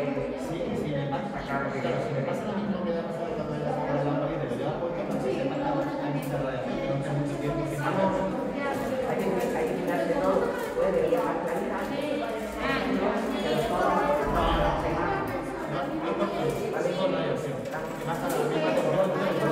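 A man talks to children close by.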